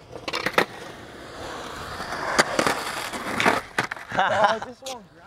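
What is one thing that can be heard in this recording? Skateboard wheels roll and rumble on concrete.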